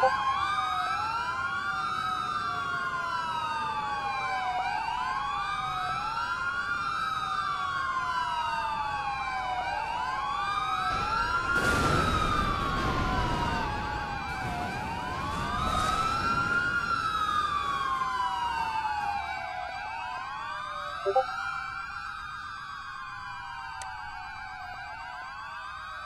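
A siren wails up and down steadily.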